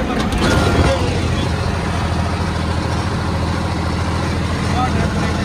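A tractor engine rumbles steadily at close range.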